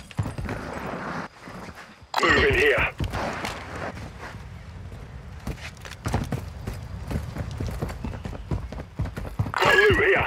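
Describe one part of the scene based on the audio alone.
Footsteps hurry over hard ground.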